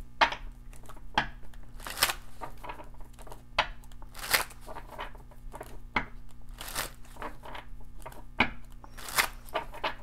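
Playing cards rustle and tap as a hand handles them.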